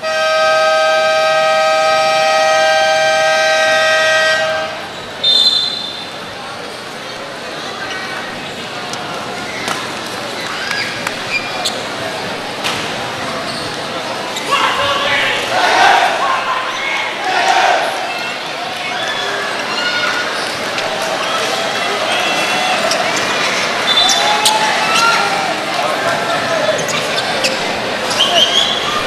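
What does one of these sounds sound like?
A large crowd chatters and murmurs in an echoing hall.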